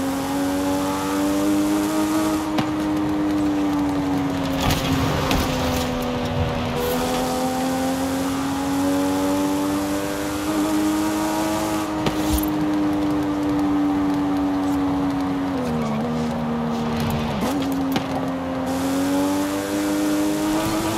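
A sports car engine hums steadily, rising and dipping in pitch as it shifts gears.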